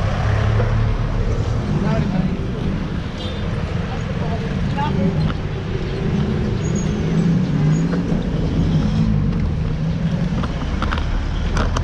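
Traffic engines rumble along a busy street outdoors.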